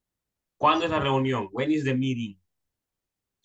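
A young man speaks through an online call.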